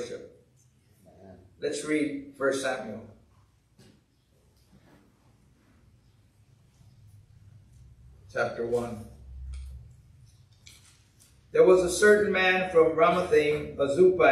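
A middle-aged man speaks calmly into a microphone in an echoing room, with pauses.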